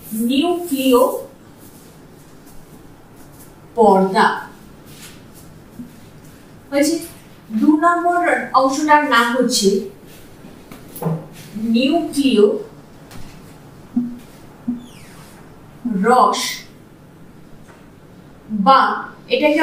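A woman speaks calmly and clearly, close by, in short phrases with pauses.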